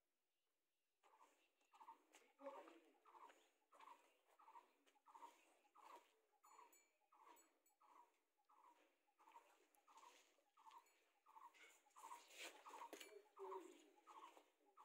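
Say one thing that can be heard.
A cow gulps water from a bucket in steady, rhythmic swallows.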